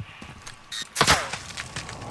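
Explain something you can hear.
A rifle is raised to the shoulder with a sharp clack.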